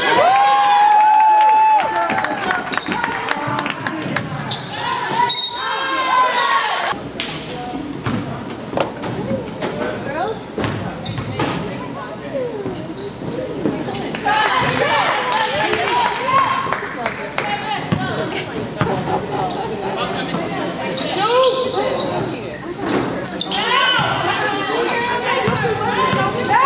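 Spectators cheer and shout.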